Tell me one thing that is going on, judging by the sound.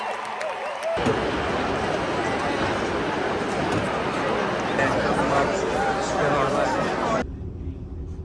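A large crowd cheers and chatters in a huge open arena.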